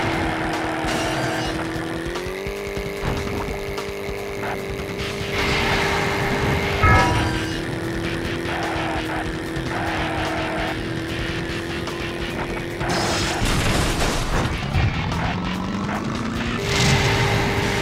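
A video game kart engine hums steadily, shifting pitch as it speeds up.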